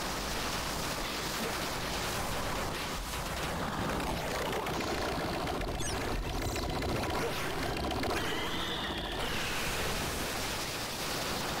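Fiery explosions burst and roar in a video game.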